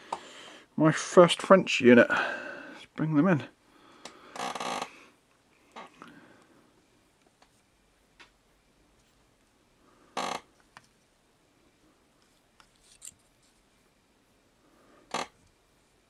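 A small base taps softly onto a tabletop.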